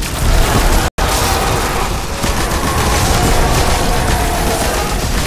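Rapid gunshots crack and boom loudly.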